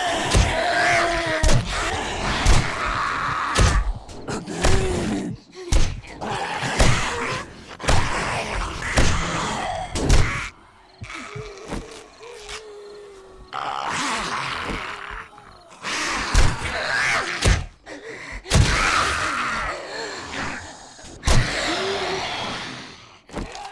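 A machete hacks into flesh with wet thuds.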